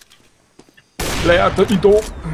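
A sniper rifle fires a loud shot.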